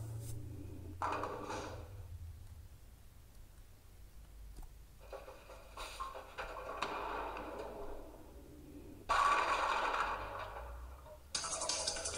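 Bowling pins crash and clatter as a ball strikes them.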